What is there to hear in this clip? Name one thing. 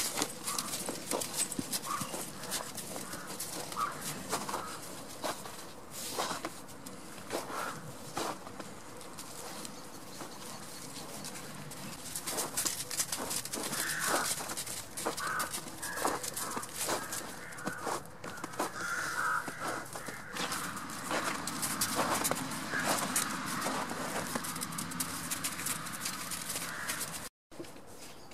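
Footsteps crunch through snow close by.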